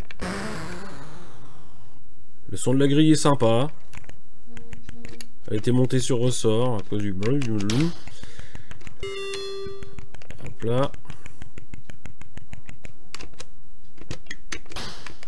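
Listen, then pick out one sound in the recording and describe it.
Retro video game bleeps and blips play throughout.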